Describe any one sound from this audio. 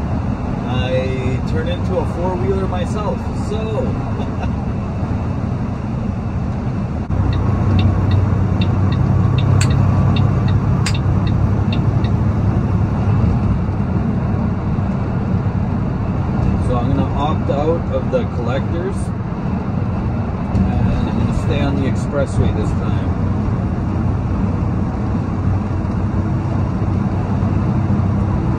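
Tyres roar on a highway.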